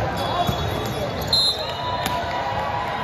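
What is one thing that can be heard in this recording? A volleyball is struck during a rally.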